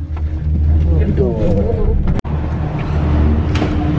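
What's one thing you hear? A cabin door slides open.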